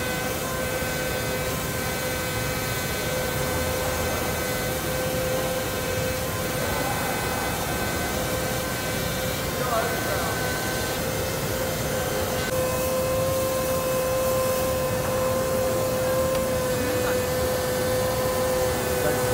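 A spray gun hisses steadily.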